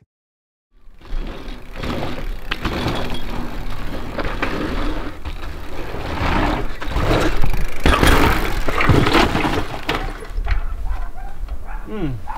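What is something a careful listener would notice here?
Bicycle tyres crunch over dirt and gravel.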